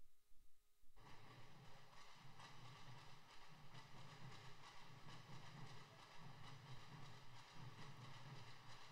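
Drums beat out a steady, fast rhythm.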